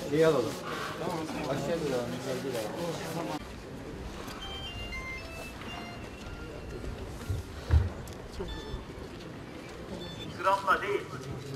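A crowd of men murmurs and chants outdoors.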